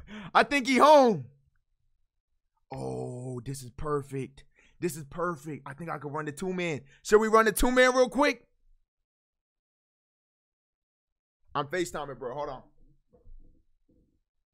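A young man talks with animation close to a microphone, in bursts with pauses.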